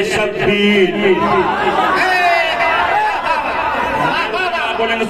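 A man speaks forcefully into a microphone, his voice loud through loudspeakers.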